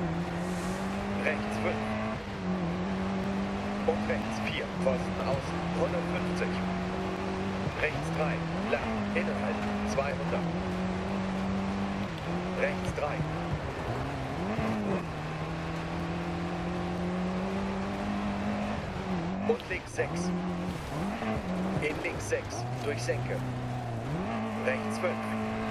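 A rally car engine roars steadily, its pitch rising and dropping with gear changes.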